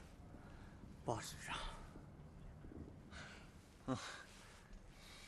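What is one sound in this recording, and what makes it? A young man with a higher voice answers plaintively.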